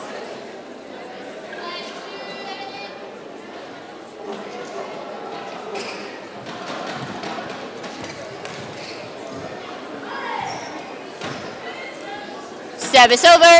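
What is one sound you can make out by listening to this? A racket strikes a shuttlecock with a sharp tap.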